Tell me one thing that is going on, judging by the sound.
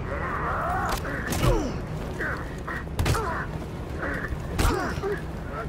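Heavy blows and thuds land in a fight.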